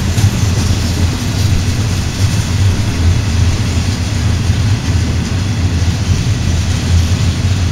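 A freight train rumbles past close by, its wheels clattering over the rail joints.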